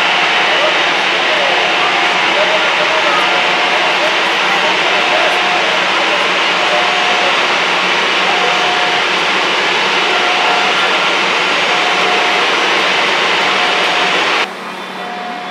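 A jet airliner's engines roar steadily as it taxis close by.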